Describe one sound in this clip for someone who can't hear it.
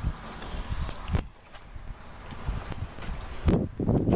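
A padlock rattles and clicks on a metal door.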